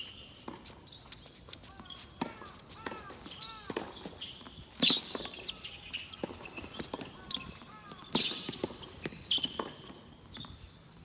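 A tennis ball is struck back and forth with rackets on an outdoor hard court.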